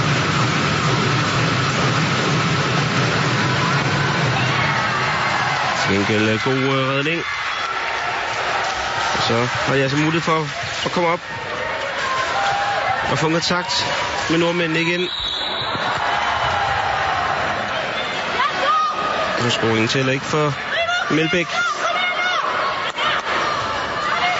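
A large crowd cheers and murmurs in an echoing hall.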